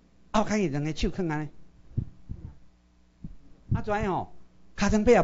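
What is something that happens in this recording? A middle-aged man speaks with animation through a microphone, in short bursts.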